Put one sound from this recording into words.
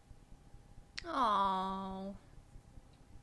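A young woman speaks softly, close by.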